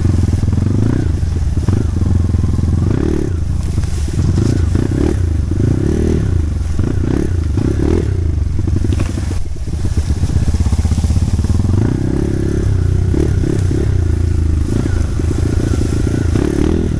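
A motorbike engine revs up and down close by.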